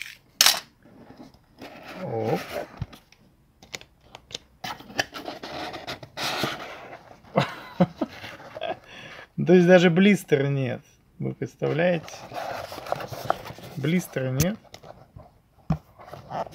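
Cardboard rustles and scrapes as a box is opened and handled.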